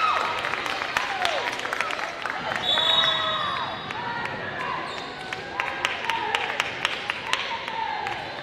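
A volleyball thuds off hands and arms.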